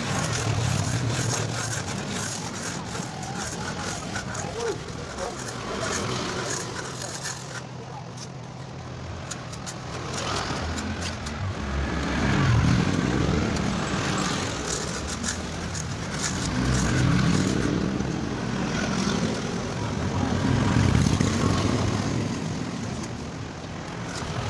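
A trowel scrapes and smooths wet cement.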